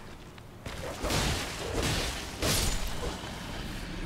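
A sword swishes and strikes during a fight.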